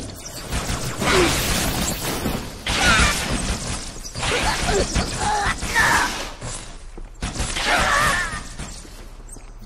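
An energy sword slashes and swooshes in a game fight.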